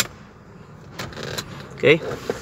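A plastic switch clicks.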